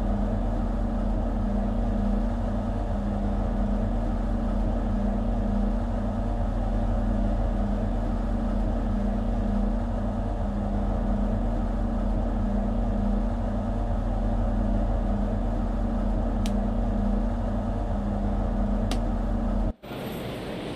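A train engine hums steadily from inside the cab, then suddenly cuts off.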